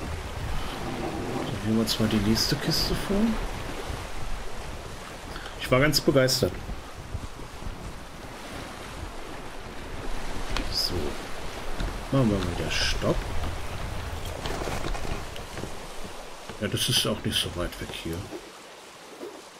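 Rough sea waves rush and splash around a small wooden sailing boat.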